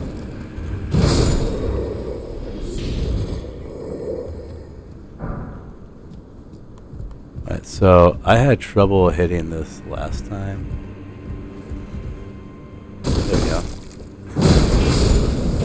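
A heavy blade slashes and strikes with a thud.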